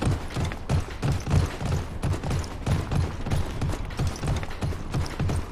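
Heavy footsteps thud at a quick, steady pace.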